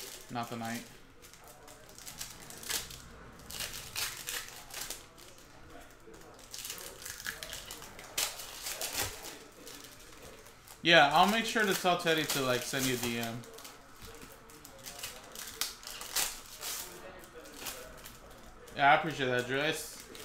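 Foil card wrappers crinkle and rustle in hands.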